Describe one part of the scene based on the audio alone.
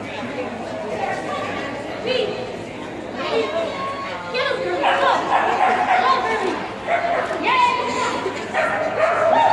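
A woman calls out eagerly to a dog in a large echoing hall.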